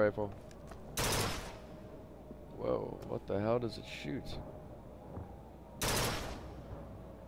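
A rifle fires a loud single shot, twice, with a short ringing echo.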